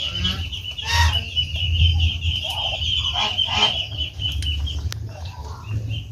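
Ducks make soft hissing and quacking calls close by.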